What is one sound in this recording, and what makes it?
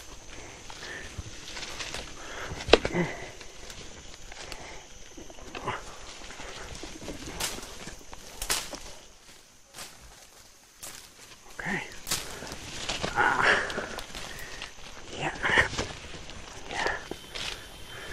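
Footsteps crunch through dry leaves on the ground.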